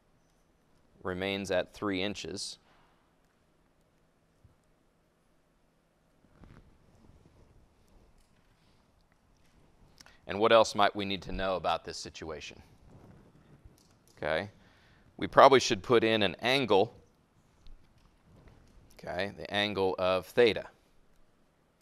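A man speaks calmly and explains, heard through a close microphone, with pauses.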